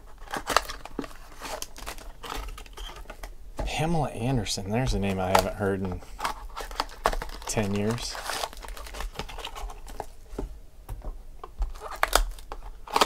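Cellophane wrappers crinkle and rustle.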